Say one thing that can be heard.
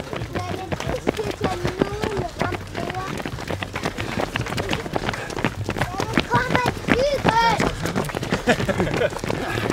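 Many running shoes patter on a paved path outdoors.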